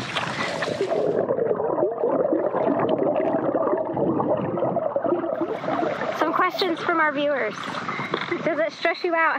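Water gurgles and rushes, heard muffled from underwater.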